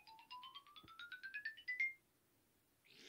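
A game plays a quick run of rising electronic beeps.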